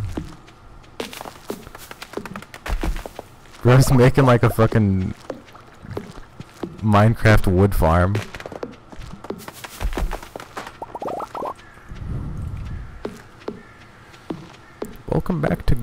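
Soft footsteps patter on dirt.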